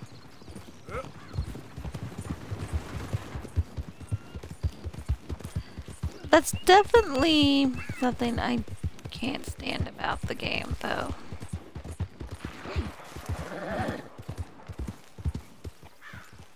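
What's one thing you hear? Horse hooves thud on the ground at a gallop.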